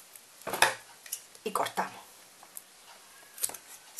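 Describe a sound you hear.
Scissors snip through a cord.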